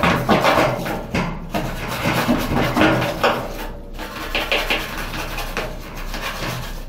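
A small brush scrubs a plastic surface.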